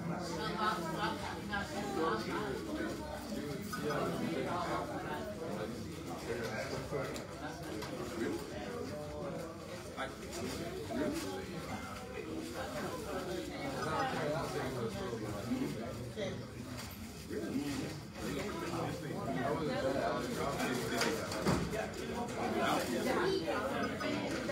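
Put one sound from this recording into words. A crowd of men and women chatters throughout a large room.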